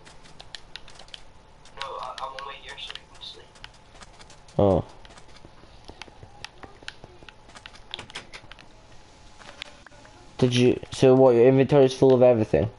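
Footsteps patter on the ground in a video game.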